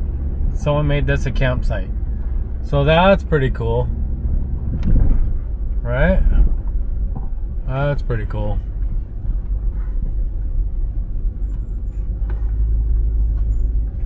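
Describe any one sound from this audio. A vehicle engine rumbles steadily while driving slowly over a dirt track.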